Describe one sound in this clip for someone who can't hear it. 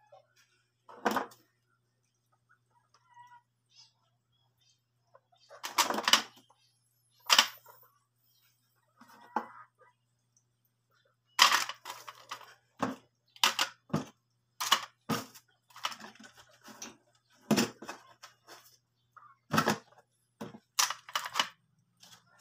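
Plastic objects clatter and knock on a wooden table.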